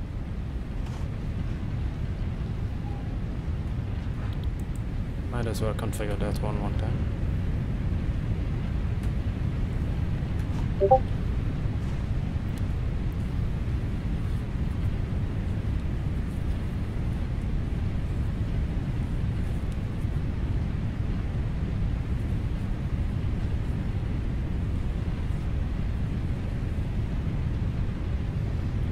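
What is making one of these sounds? A low mechanical rumble drones steadily throughout.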